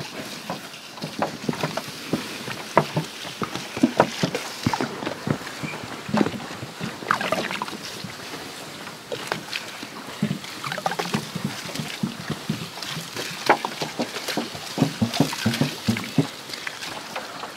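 Hot stones crackle and pop under the water.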